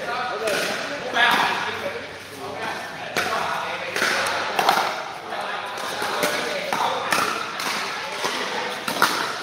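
Paddles strike a plastic ball with sharp hollow pops.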